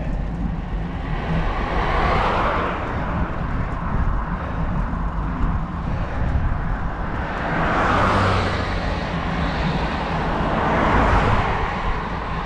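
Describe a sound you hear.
Cars approach and swoosh past close by.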